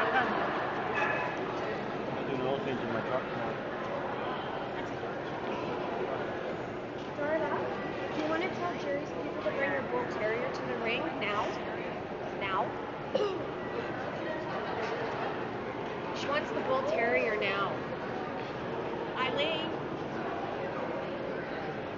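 Men and women murmur and chat at a distance in a large echoing hall.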